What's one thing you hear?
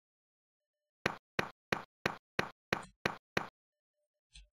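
Quick footsteps patter in a retro video game.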